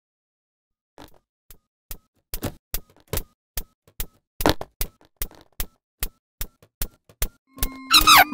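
Footsteps tap quickly and evenly on a hard floor.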